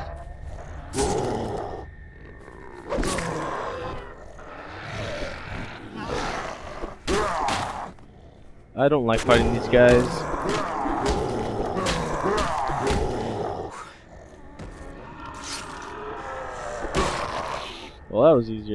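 A knife slashes and stabs into flesh with wet, heavy thuds.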